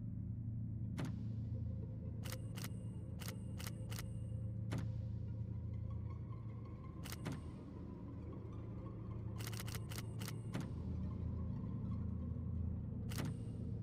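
A safe's combination dial clicks sharply as it turns.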